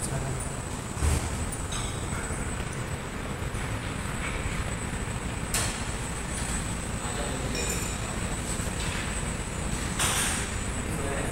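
A cable machine's weight stack clanks as it rises and falls.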